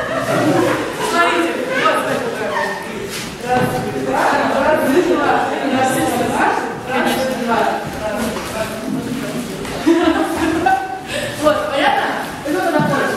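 Men and women chatter and laugh nearby.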